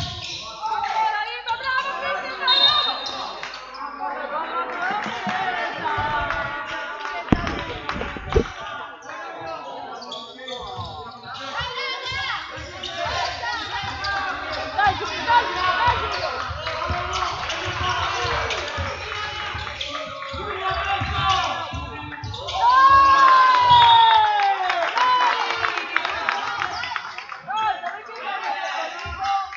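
Spectators murmur and call out.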